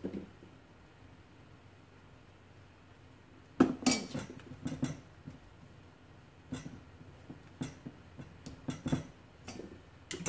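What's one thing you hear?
A spatula scrapes and knocks against a metal bowl.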